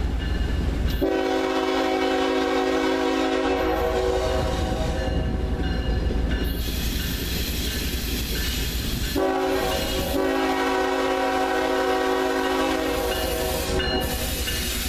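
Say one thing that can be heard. A diesel locomotive's air horn sounds two long blasts.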